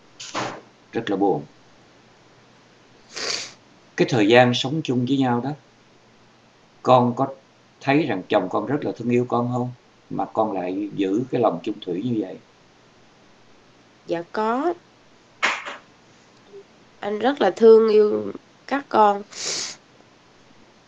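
A young woman speaks emotionally over an online call.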